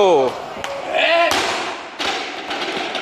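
A heavy barbell crashes down onto a rubber floor.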